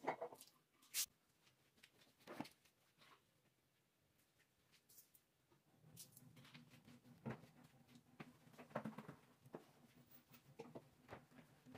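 Flip-flops slap on a tiled floor.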